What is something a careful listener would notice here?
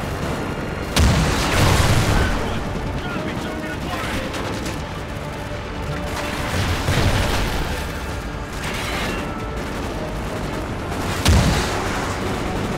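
Rockets launch with a loud roaring whoosh.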